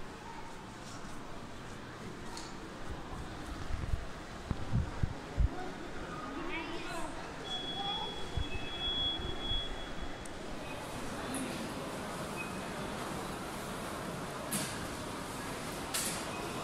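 A low murmur of distant shoppers fills a large echoing hall.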